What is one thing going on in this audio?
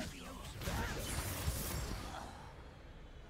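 A magic spell crackles and zaps with a sharp burst.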